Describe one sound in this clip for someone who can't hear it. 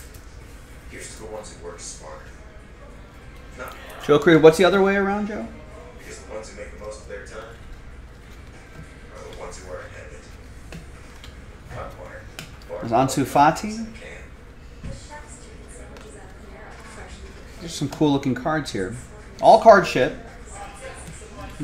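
Cards rustle and slide in a man's hands.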